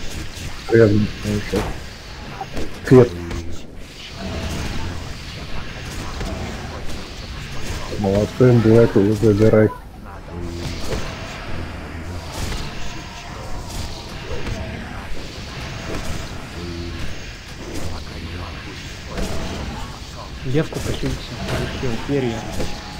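Game combat effects whoosh and clash.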